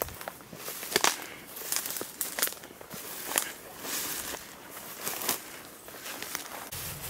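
Footsteps rustle and crunch through tall dry grass and twigs.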